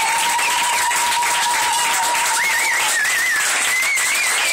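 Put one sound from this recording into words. Several people clap their hands.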